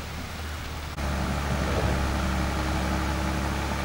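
A waterfall splashes and rushes steadily over rocks.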